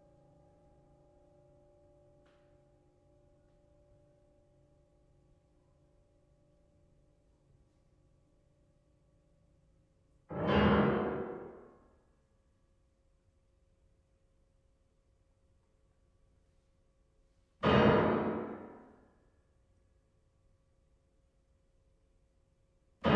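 Strings hold soft, long notes.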